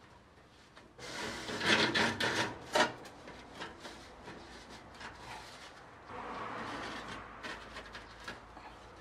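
A flexible metal duct crinkles and rattles as it is handled.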